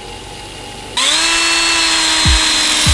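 A power tool whines steadily.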